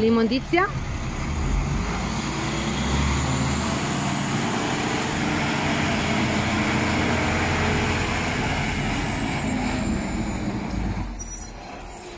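A large truck engine rumbles close by.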